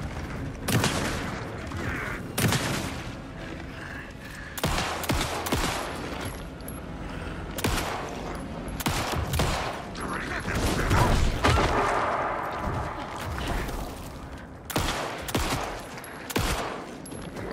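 A pistol fires sharp, loud shots several times.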